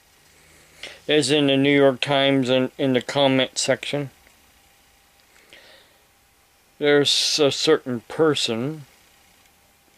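An elderly man speaks calmly and close by, in bursts with pauses.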